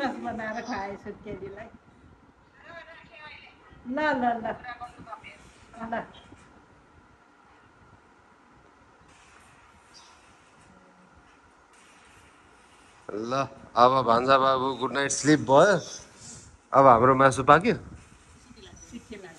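An older woman talks and laughs close by.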